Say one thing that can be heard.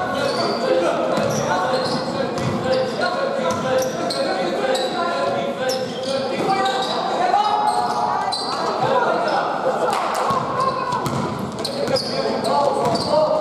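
Young players call out to each other across the hall.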